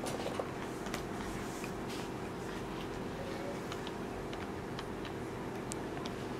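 A plastic remote control taps and clicks against a soft surface.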